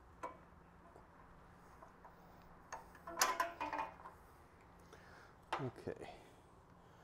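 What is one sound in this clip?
Metal pieces clink and clatter on a workbench.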